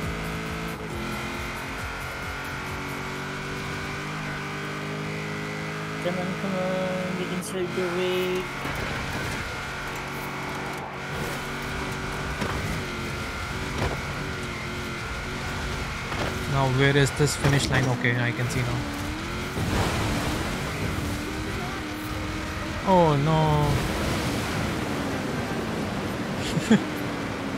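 A rally car engine roars and revs at high speed.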